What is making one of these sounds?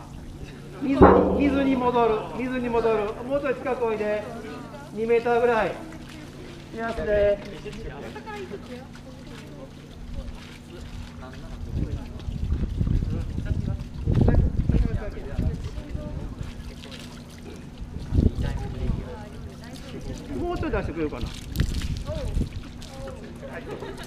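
A man speaks loudly to a group outdoors.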